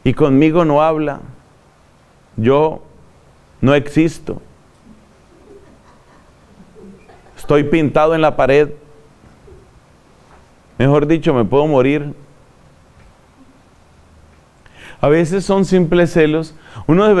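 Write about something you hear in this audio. A middle-aged man speaks calmly in short phrases, close to a microphone, with pauses between.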